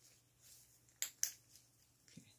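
A flashlight switch clicks.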